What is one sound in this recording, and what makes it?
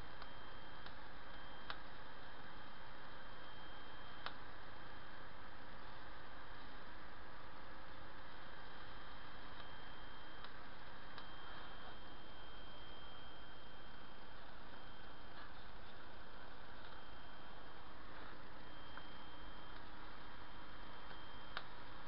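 Electric sparks buzz and crackle steadily from a high-voltage coil.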